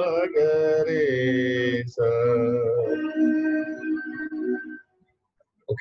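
A woman sings a scale of syllables through an online call.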